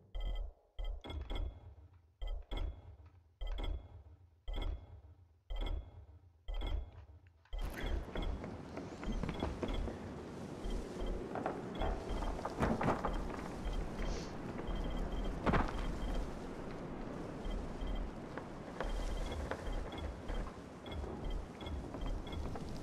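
Short menu clicks tick again and again as selections move.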